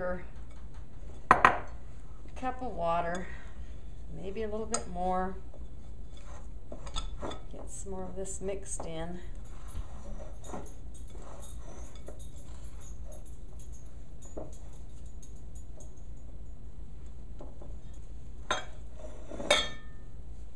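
Hands squish and knead soft dough in a bowl.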